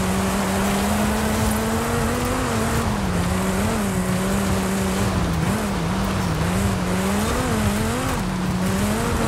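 Tyres crunch over gravel.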